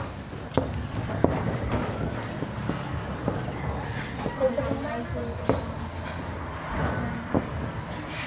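A cloth rubs across a board, wiping it clean.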